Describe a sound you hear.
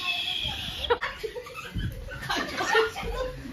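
Young men laugh heartily close by.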